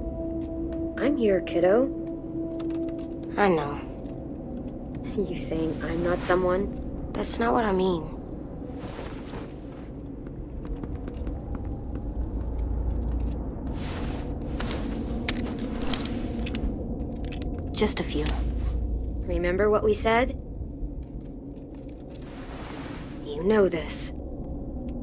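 A teenage girl speaks softly and gently.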